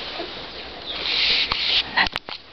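Cardboard rustles as a dog moves in a box.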